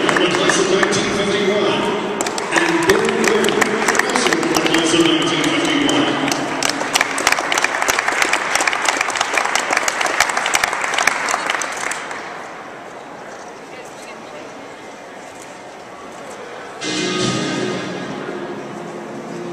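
A man speaks over a loudspeaker, echoing through a large hall.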